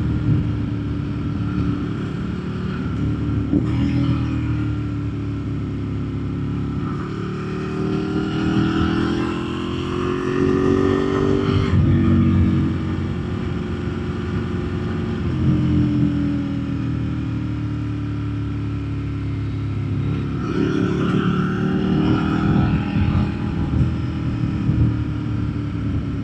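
A motorcycle engine roars steadily, rising and falling in pitch as the rider shifts gears.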